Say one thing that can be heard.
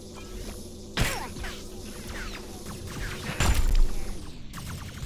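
A blaster fires with a loud burst.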